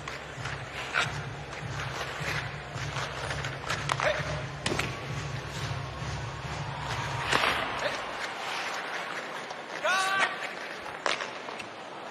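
Hockey sticks clack sharply against a puck.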